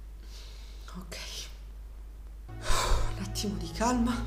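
A young woman speaks quietly and hesitantly into a close microphone.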